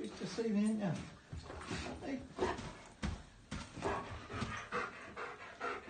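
A dog whines and yelps with excitement.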